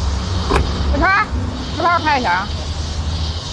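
A young woman calls out loudly outdoors.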